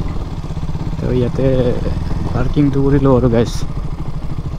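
A motorcycle engine revs up sharply a few times.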